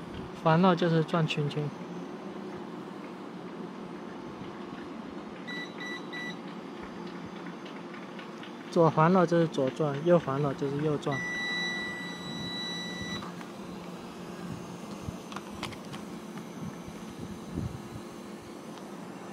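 A small drone buzzes steadily as it hovers nearby outdoors.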